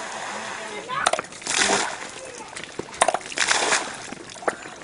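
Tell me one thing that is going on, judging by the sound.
Water gushes from a hand pump and splashes onto the ground in bursts.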